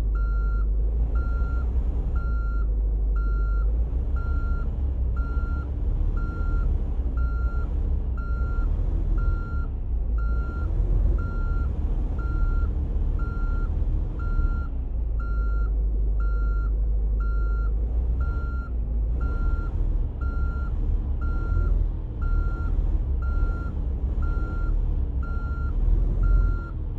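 A truck engine rumbles low and steady, rising and falling slightly in pitch.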